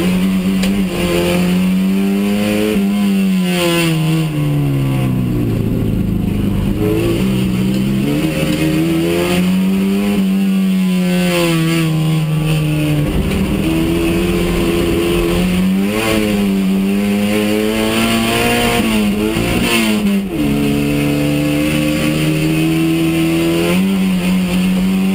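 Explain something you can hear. Gravel and dirt rattle against the car's underside.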